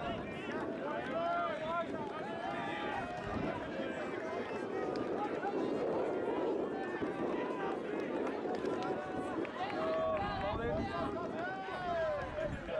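A group of young men chatter and call out outdoors.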